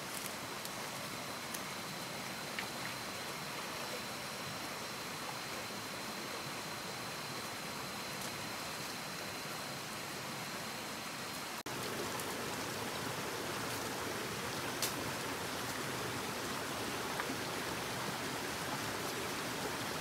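A shallow stream trickles and babbles over rocks.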